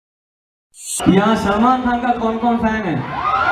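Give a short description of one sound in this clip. A young man sings into a microphone through loudspeakers.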